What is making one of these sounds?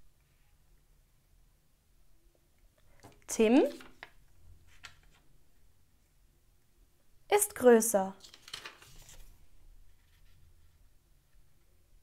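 Paper cards are set down and slid softly on a surface.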